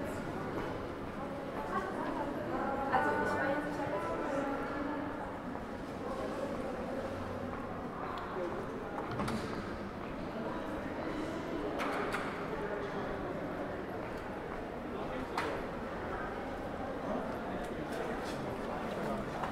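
Footsteps tap on a hard floor in an echoing passage.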